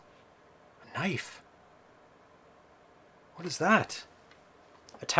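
A man speaks briefly and with animation into a close microphone.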